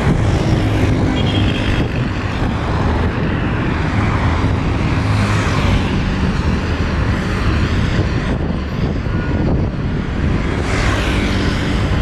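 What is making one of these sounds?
A motorcycle engine passes by.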